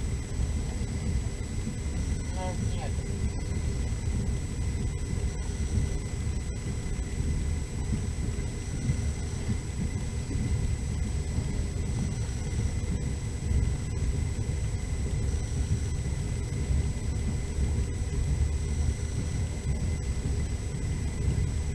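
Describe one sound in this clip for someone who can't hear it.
Tyres rumble over a snowy road.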